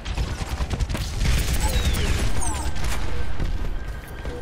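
Rapid gunfire crackles.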